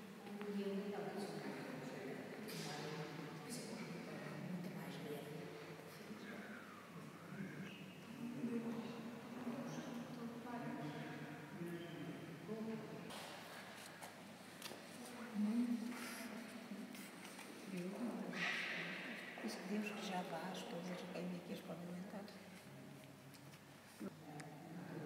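Elderly women talk calmly nearby in a large echoing hall.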